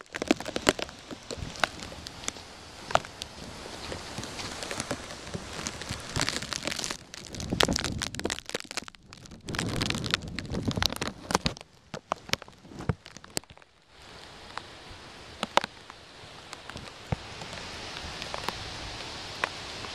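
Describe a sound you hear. Heavy rain falls steadily outdoors.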